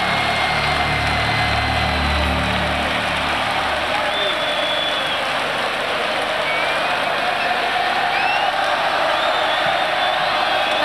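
Fans in a crowd whistle shrilly now and then.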